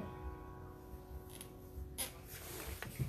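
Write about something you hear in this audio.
An acoustic guitar strums and stops.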